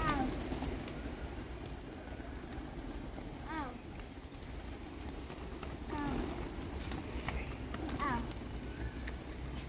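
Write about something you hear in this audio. A large flock of pigeons coos nearby.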